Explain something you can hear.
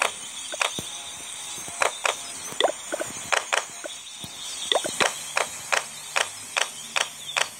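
Short clicking game sound effects pop repeatedly.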